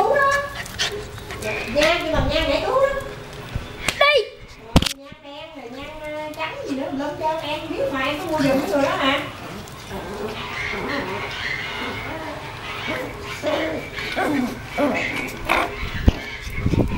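A puppy whines and yelps in high bursts.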